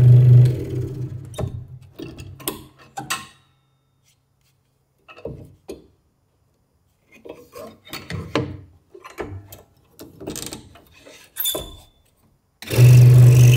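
Hands knock and rustle as a blade is fitted to a scroll saw.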